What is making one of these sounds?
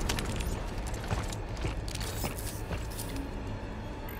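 Heavy boots thud and scrape on rocky ground.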